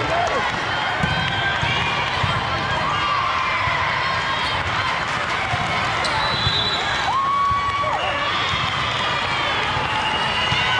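A volleyball is struck with sharp slaps.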